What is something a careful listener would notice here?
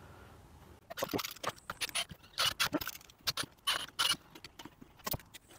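Wooden boxes knock and clatter together.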